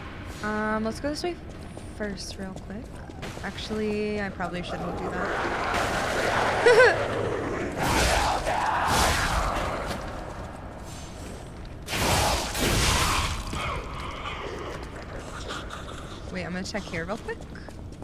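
A young woman talks casually into a microphone, close by.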